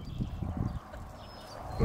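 A puppy pants softly.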